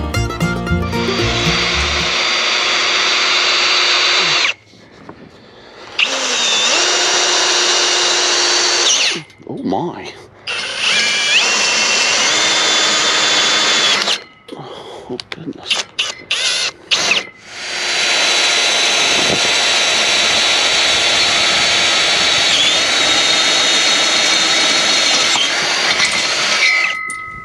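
A cordless drill whirs in long bursts, driving screws into metal.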